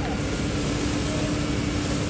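Water sprays hard from a hose.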